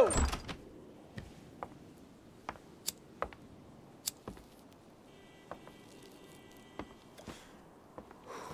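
A man's footsteps tap on a hard floor.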